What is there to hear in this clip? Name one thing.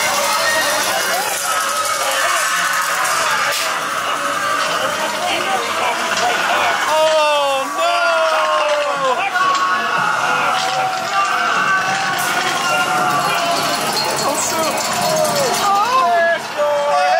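Young people shriek and chatter nearby.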